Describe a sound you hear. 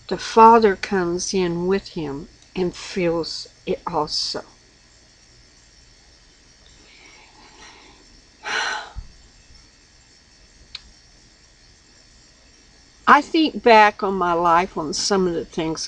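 An elderly woman speaks calmly and closely into a microphone.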